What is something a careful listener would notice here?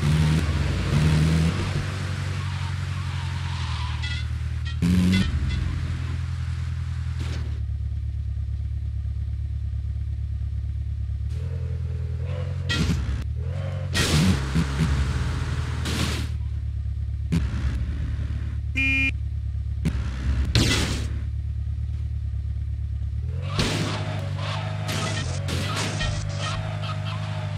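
Tyres rumble and scrape over rough ground in bursts.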